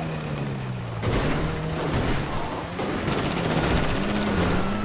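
Car tyres crunch and bump over rough ground.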